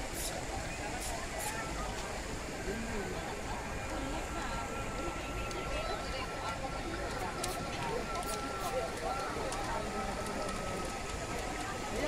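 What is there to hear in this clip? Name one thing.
A large crowd chatters outdoors.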